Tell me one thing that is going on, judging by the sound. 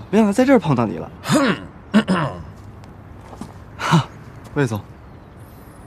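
A young man answers in a calm, low voice.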